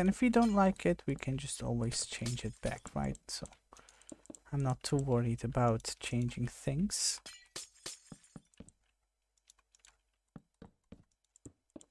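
Game blocks break with short wooden knocks.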